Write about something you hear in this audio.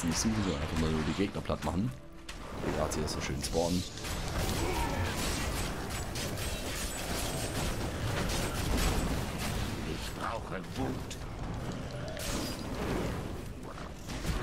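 Fire crackles and roars in bursts.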